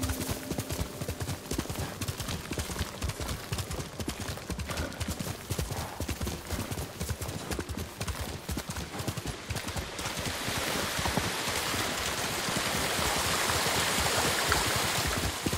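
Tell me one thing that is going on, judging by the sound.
Wind blows through tall grass.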